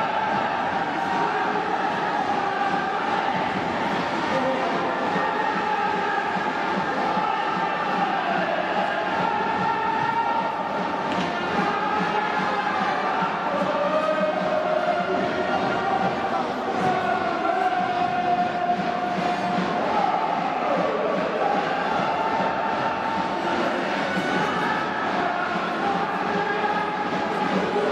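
A brass band plays a lively tune in a large echoing stadium.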